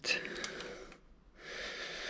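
A cable rustles and rubs against metal parts.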